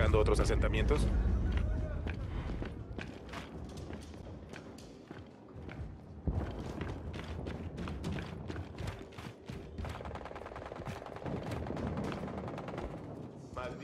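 Heavy armoured footsteps thud.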